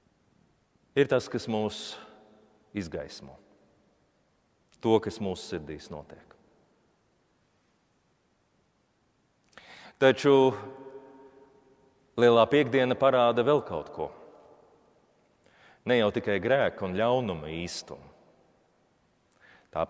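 A man sings a prayer through a microphone in a large echoing church, in phrases with pauses between them.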